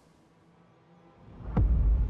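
Shoes step on a hard floor.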